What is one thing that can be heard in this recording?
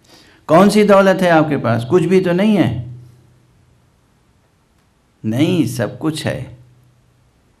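An elderly man speaks with feeling into a microphone, in short phrases with pauses.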